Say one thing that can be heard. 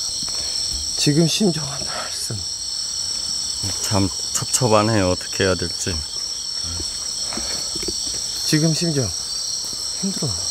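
A young man speaks quietly close by, in short bursts.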